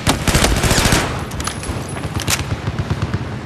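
Rapid gunshots ring out.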